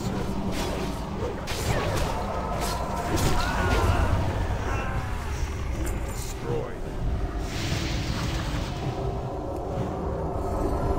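Magic spells whoosh and crackle in a busy fantasy battle.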